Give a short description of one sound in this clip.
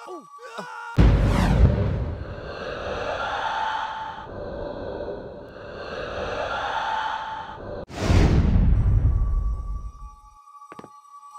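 A loud rushing whoosh swells and sweeps.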